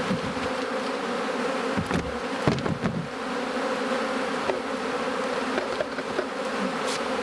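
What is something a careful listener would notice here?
Wooden hive parts knock and scrape as they are handled.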